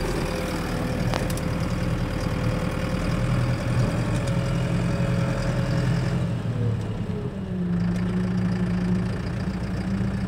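Loaded trailers rattle and clatter behind a moving tractor.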